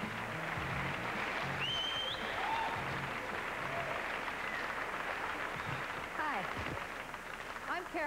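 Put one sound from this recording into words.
A large crowd cheers and applauds in a big hall.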